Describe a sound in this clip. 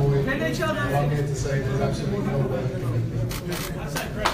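A man speaks into a microphone over loudspeakers, in a large echoing room.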